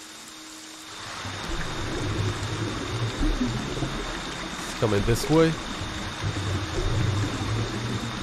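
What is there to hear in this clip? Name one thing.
Rain pours down steadily outdoors.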